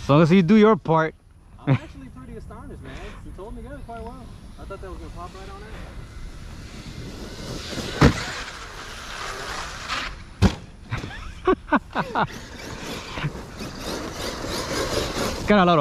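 A small racing drone's propellers whine, rising and falling in pitch as it flies.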